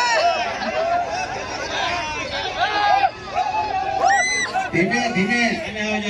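A crowd cheers and shouts nearby.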